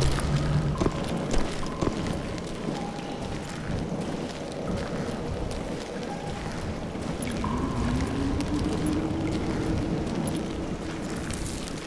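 Torches crackle and hiss softly.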